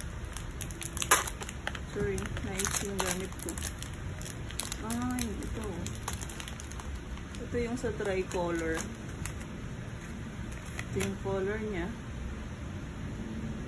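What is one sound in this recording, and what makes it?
Plastic packaging crinkles and rustles in a person's hands.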